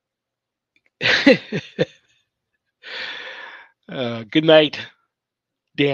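A middle-aged man laughs heartily.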